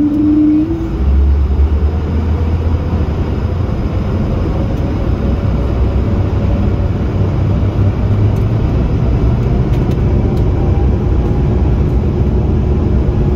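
Jet engines rise to a loud roar as a plane speeds down the runway.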